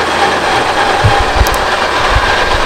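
Wind gusts outdoors and buffets loudly in short bursts.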